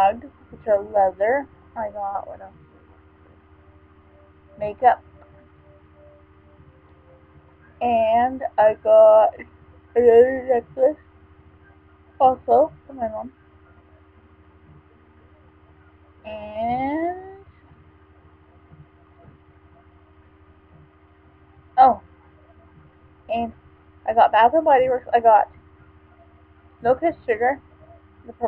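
A woman talks with animation close to a microphone, in short bursts with pauses.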